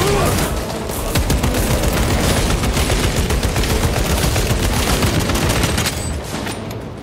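Gunfire rattles in short bursts.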